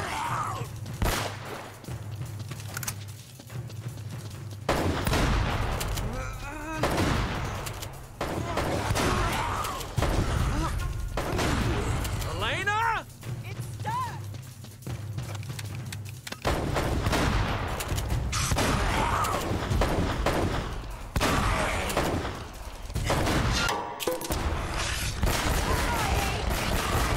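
Gunshots ring out in bursts.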